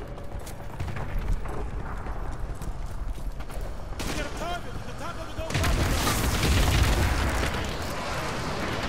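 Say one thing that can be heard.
Low explosions and battle noise rumble steadily.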